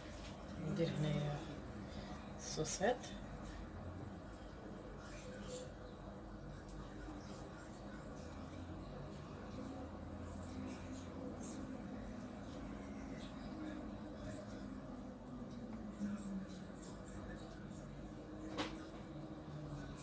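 Slices of sausage are softly patted onto a pizza base.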